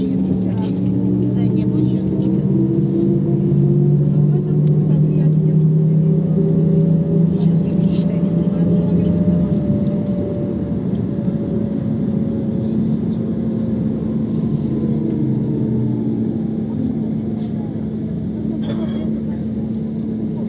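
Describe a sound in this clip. A vehicle's engine hums steadily from inside as it drives along the street, its pitch rising and falling.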